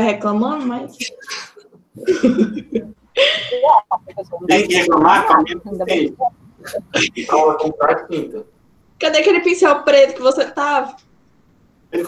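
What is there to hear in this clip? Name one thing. A young woman talks cheerfully over an online call.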